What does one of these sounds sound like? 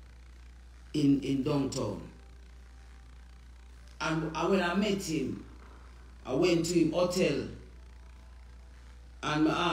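A woman speaks calmly and close to the microphone, in short phrases with pauses.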